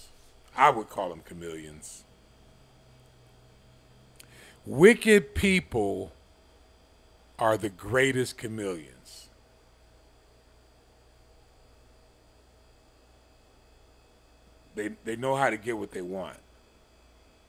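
An elderly man speaks calmly in short phrases, close to a microphone.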